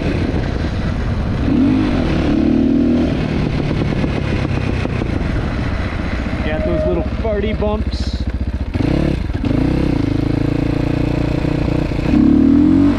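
A dirt bike engine revs and putters up close.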